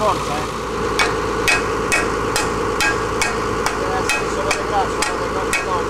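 A ratchet wrench clicks in a steady rhythm on metal.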